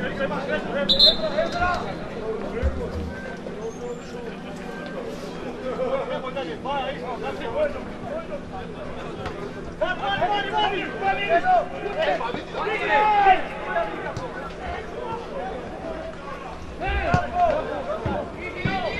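Men call out to each other outdoors at a distance.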